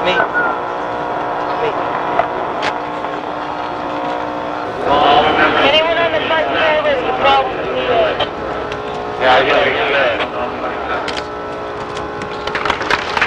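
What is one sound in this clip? A middle-aged man answers, heard through the microphone.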